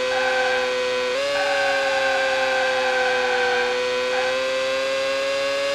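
A racing car engine drones at high revs, its pitch jumping briefly as it shifts gear.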